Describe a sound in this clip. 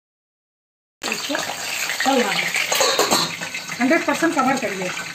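Fish sizzles and crackles in hot oil.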